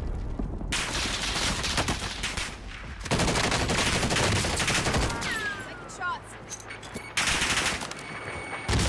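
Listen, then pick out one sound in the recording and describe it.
Rapid gunfire bursts loudly and close by.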